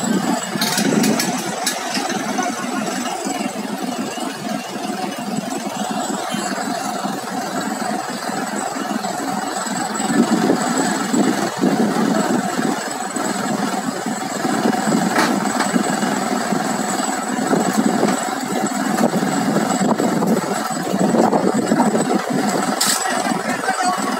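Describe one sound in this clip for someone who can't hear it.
Heavy diesel engines rumble and whine steadily outdoors.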